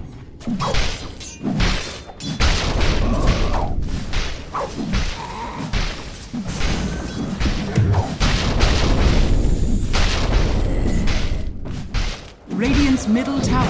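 Weapons clash and hit repeatedly in a fight.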